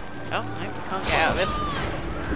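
A gunshot cracks in a video game.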